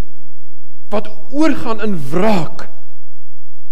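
A middle-aged man speaks with animation into a microphone, in a room with a slight echo.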